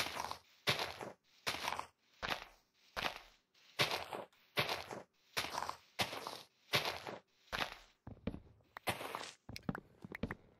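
Leafy blocks crunch and rustle as they are broken, in quick repeated bursts.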